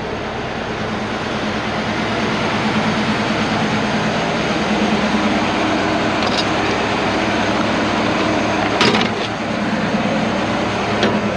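A tow truck's winch engine revs up with a steady drone.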